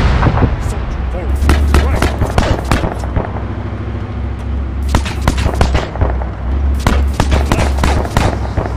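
Shells explode nearby with deep blasts.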